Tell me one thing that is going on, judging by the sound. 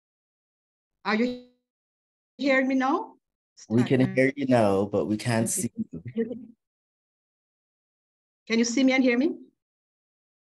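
A man speaks warmly through an online call.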